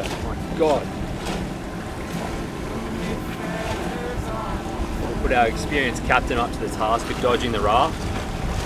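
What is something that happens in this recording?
Water splashes and rushes against the hull of a moving boat.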